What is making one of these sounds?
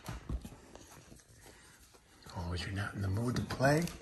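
A hand rubs and scratches a dog's fur.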